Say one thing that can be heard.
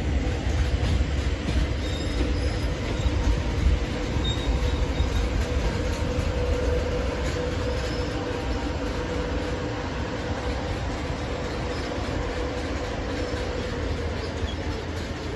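A high-speed electric train rolls slowly past.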